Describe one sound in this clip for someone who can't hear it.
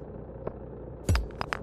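A rock cracks open with a sharp knock.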